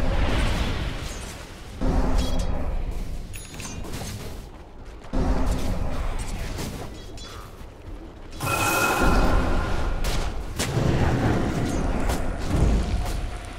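Spell effects burst and whoosh in a fantasy battle game.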